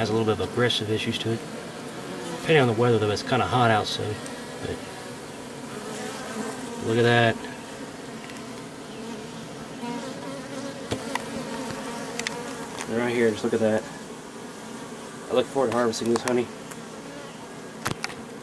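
Honeybees hum steadily up close.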